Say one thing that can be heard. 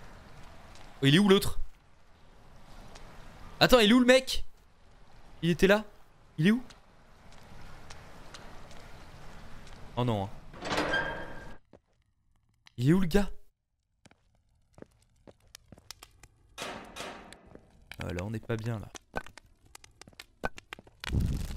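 A young man talks in short bursts close to a microphone.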